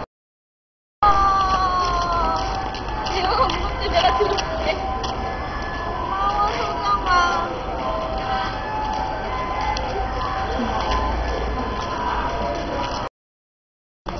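A young girl talks with animation nearby.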